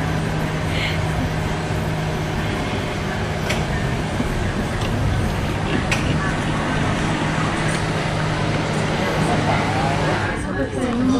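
A cable car's machinery hums steadily.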